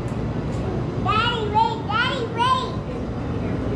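A young girl speaks close by in a high, lively voice.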